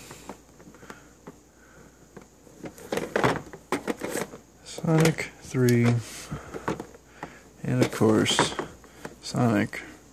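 Plastic game cases click and scrape as they are slid out of a tightly packed shelf and pushed back in.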